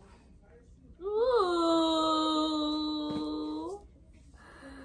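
A young woman sings a long, loud held note.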